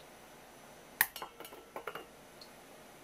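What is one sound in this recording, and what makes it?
A spoon scrapes paste into a metal bowl.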